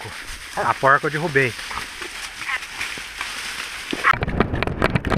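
Tall grass rustles and brushes close by.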